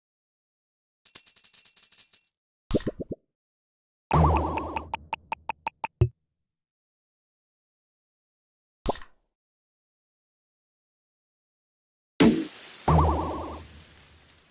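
Short electronic game sound effects chime, pop and jingle in bursts.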